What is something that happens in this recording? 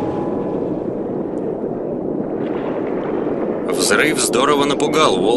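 A submersible's thrusters hum steadily underwater.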